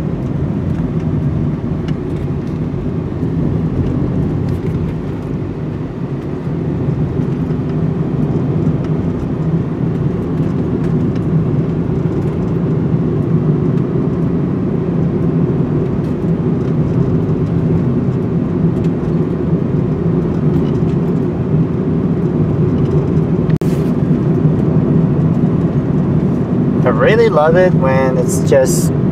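Tyres roll steadily over the road.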